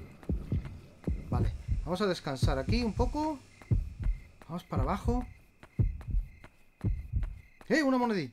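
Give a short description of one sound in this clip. Footsteps tap at a steady pace.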